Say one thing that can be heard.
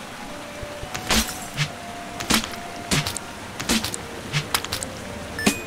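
Video game hit sounds smack sharply, several times.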